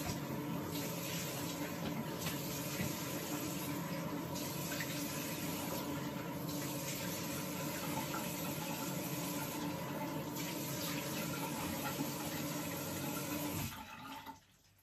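Water runs steadily from a tap and splashes into a sink.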